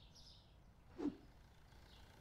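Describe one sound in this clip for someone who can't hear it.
A cardboard box is picked up with a dull thump.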